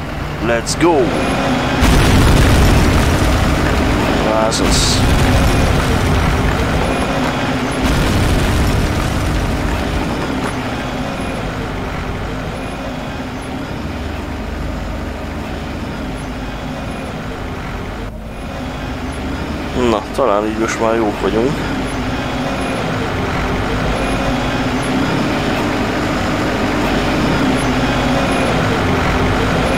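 A heavy engine rumbles steadily nearby.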